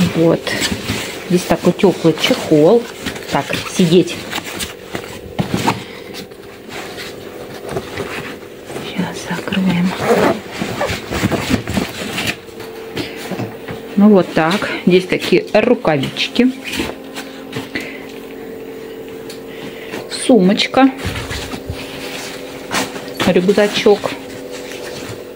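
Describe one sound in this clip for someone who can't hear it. Stiff fabric rustles and swishes as hands handle it close by.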